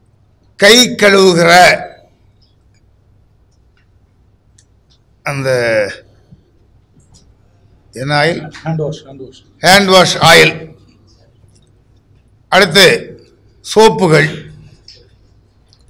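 An elderly man speaks forcefully into microphones in short bursts with pauses.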